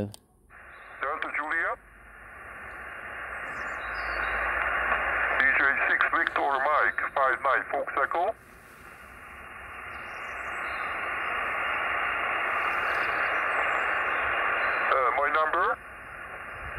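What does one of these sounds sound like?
A man's voice comes faintly through a radio loudspeaker, broken by static.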